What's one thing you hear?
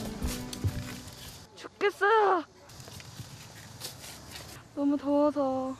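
A shovel scrapes and digs into soil.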